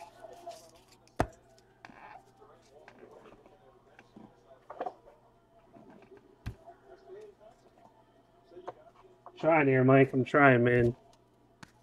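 Hands shuffle and tap trading cards close by.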